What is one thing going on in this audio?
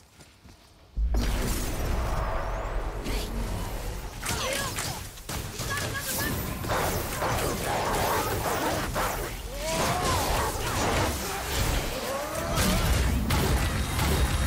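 A heavy axe strikes and clangs against enemies.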